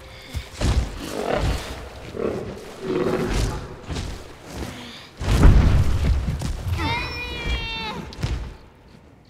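Heavy footsteps of a huge creature thud and rumble.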